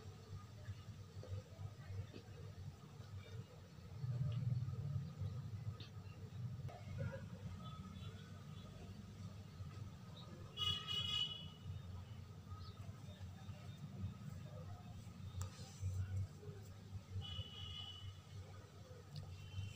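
A paintbrush brushes softly against a rough wall.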